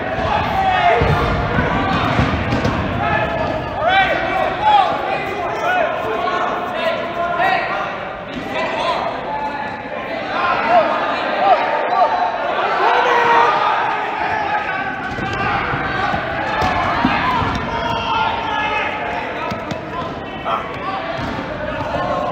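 Shoes squeak on a gym floor.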